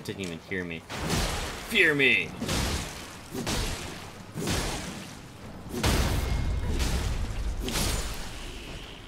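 Blades strike and slash in heavy blows.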